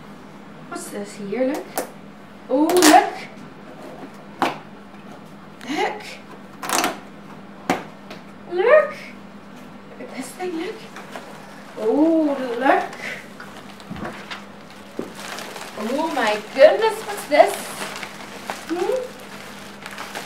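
A woman speaks nearby in a bright, animated voice.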